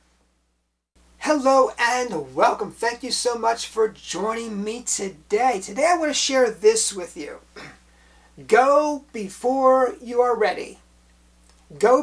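A middle-aged man speaks calmly and clearly to a close microphone.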